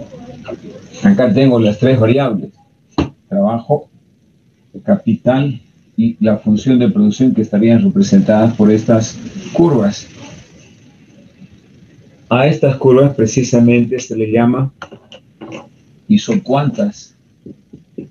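An older man speaks calmly in a lecturing tone, close to a microphone.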